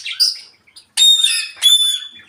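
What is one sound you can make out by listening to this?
A parrot whistles high, clear notes.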